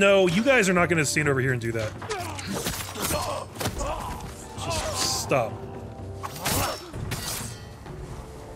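Swords clash and strike.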